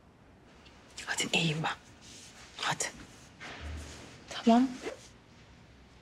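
A woman speaks quietly and calmly nearby.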